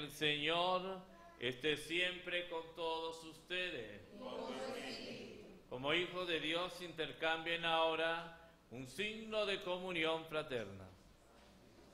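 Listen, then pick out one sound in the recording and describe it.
A man chants through a microphone in a reverberant hall.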